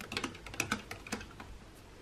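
A spoon stirs and clinks against glass.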